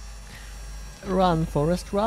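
A young man speaks up loudly and with animation into a close microphone.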